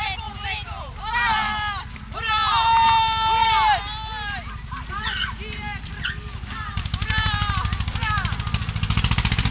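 Children and adults sing together outdoors.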